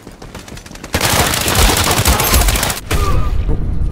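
Automatic gunfire rattles in a rapid burst.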